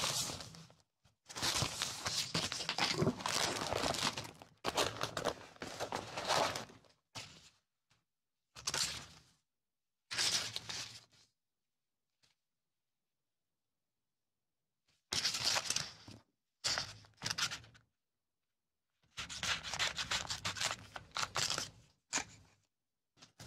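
Paper rustles and crinkles as hands handle stickers.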